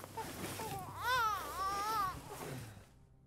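A woman screams loudly close by.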